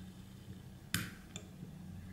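A soda can's tab snaps open with a sharp click.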